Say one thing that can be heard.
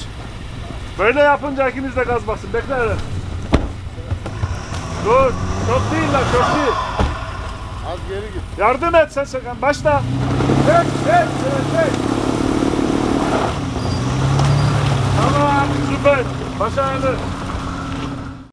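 A man shouts directions loudly outdoors.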